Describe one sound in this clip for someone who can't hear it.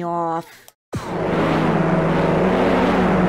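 Racing car engines roar loudly.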